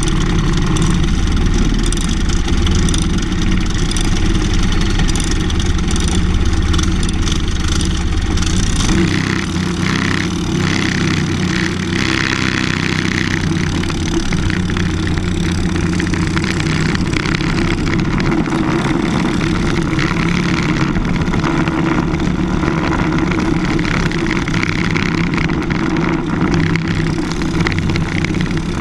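A kart engine buzzes loudly close by.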